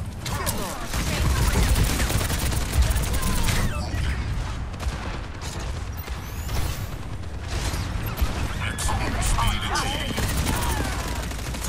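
Guns fire rapidly in bursts.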